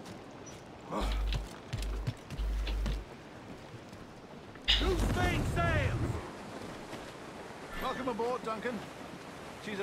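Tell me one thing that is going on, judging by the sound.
Heavy footsteps thud on a wooden deck.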